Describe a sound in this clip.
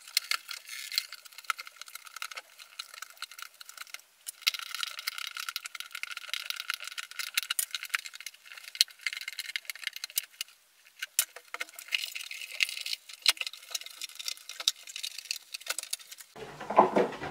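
A plastic sheet crinkles and rustles as it is handled up close.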